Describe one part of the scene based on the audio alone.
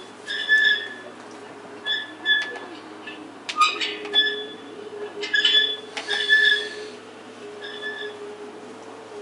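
A metal merry-go-round squeaks as it spins.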